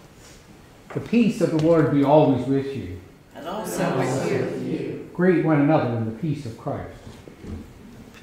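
An elderly man speaks calmly and clearly, close to a microphone.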